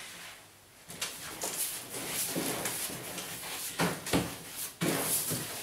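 A pasting brush swishes across wallpaper.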